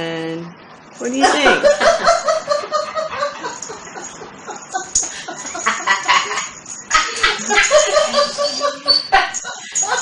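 A small dog barks and howls in high, rapid yelps.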